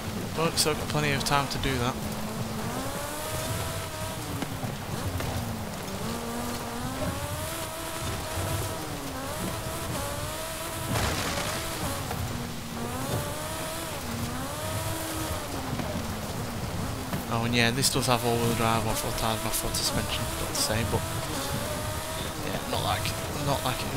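Tyres crunch and skid over loose gravel.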